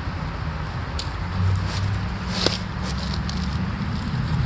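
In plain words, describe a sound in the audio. Dry leaves crunch and rustle underfoot.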